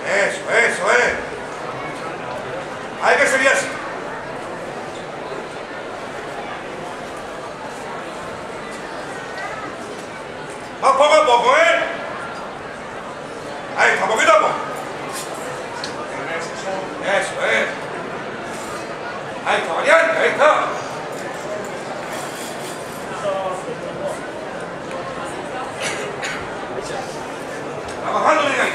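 A man's voice calls out loudly in short bursts.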